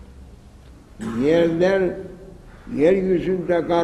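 An elderly man chants in a loud, drawn-out voice, echoing in a large hall.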